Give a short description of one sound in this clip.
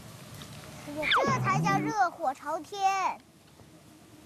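A young girl exclaims in a high voice.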